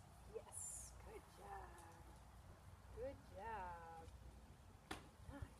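A young woman talks to a dog in an excited, high voice.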